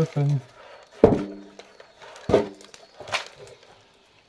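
A hand knocks on a wooden post.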